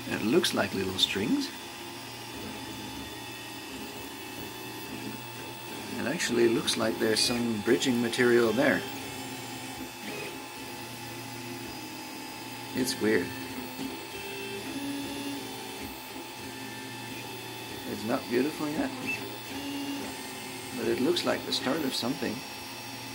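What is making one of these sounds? A printer's motors whine and buzz in short bursts of changing pitch as the print head moves.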